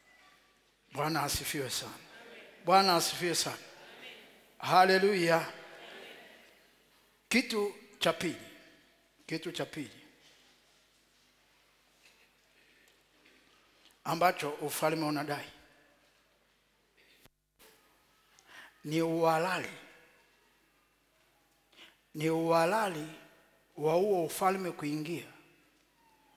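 A man preaches loudly through a microphone in short, forceful bursts, in a large echoing hall.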